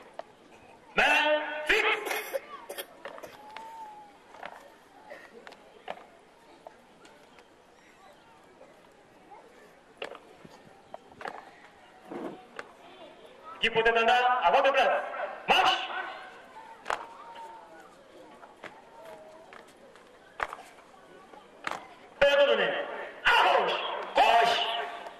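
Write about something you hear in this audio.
A man shouts loud marching commands outdoors.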